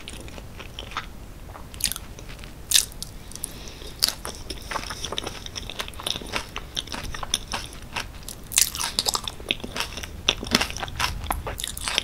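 A woman chews soft food with wet, sticky mouth sounds close to a microphone.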